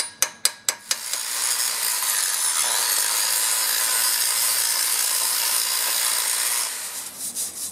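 An angle grinder whines loudly against metal.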